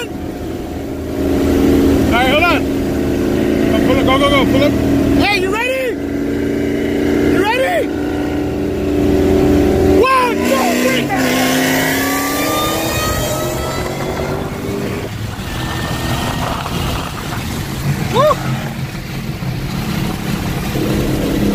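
Car engines idle and rev loudly close by.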